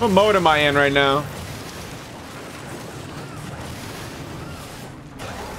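Game laser guns fire with a crackling hiss.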